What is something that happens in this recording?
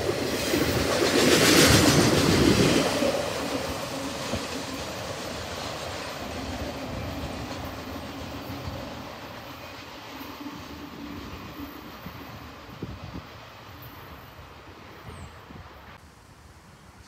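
A freight train rumbles past, loud at first and fading into the distance.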